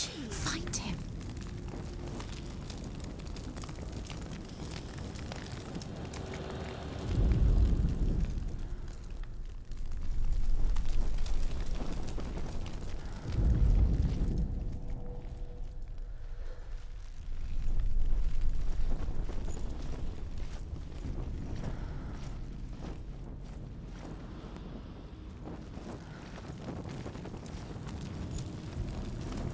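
A torch flame crackles and hisses close by.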